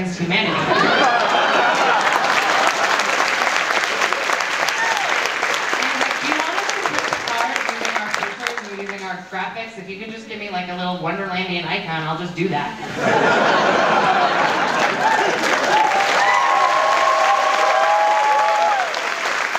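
A large crowd claps loudly in an echoing hall.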